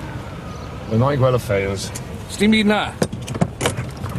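A man speaks briskly from inside a car.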